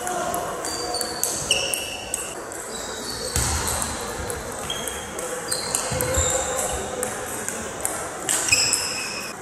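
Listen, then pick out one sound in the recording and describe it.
Sports shoes squeak briefly on a hard floor.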